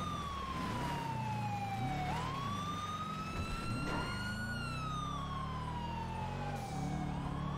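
A car engine roars and whines, rising and falling in pitch as gears shift.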